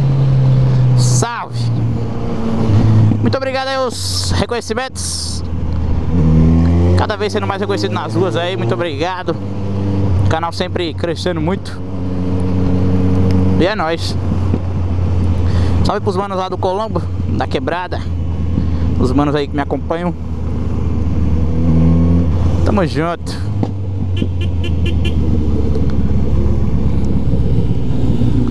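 A motorcycle engine rumbles close by and revs up and down as it rides.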